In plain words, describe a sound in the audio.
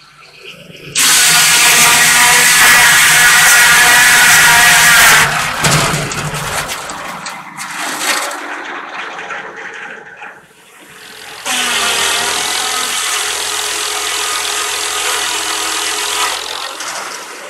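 A circular saw screams loudly as it cuts through a log.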